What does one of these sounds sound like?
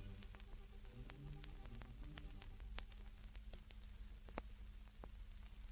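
Old blues music plays faintly from a gramophone record.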